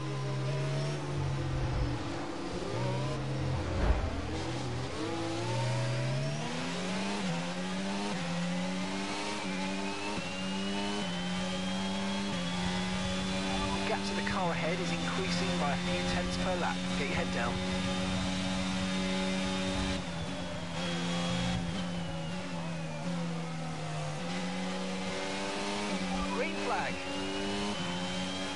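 A racing car engine whines, rising in pitch as it speeds up and dropping as it slows.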